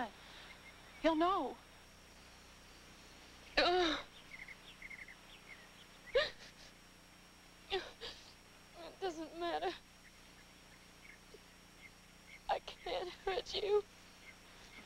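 A young woman sobs and wails in distress, close by.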